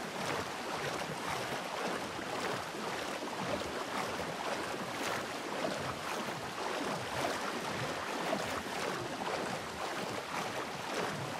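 Water splashes and swishes steadily as a man swims through it.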